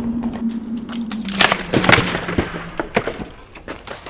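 A skateboard clatters and slaps onto concrete.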